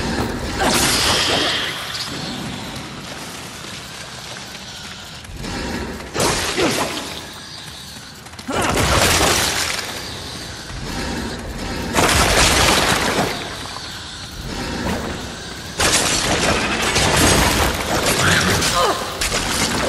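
Flames crackle and roar in bursts.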